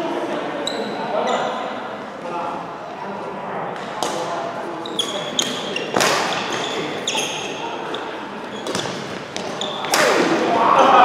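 Badminton rackets strike a shuttlecock back and forth.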